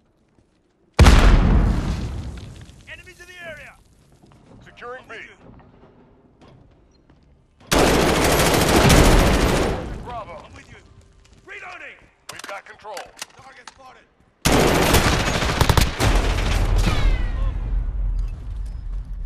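Gunfire rings out in loud bursts with a booming echo.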